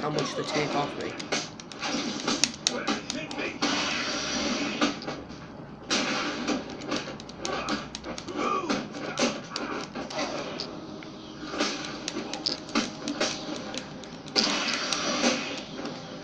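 Punches and blows thud and smack from a video game fight, heard through television speakers.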